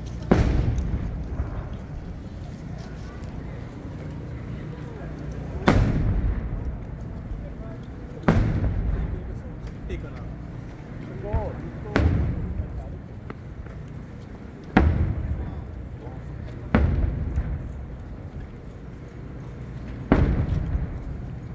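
Fireworks burst with loud booming bangs that echo away.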